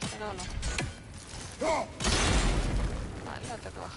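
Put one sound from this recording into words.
An axe whooshes through the air.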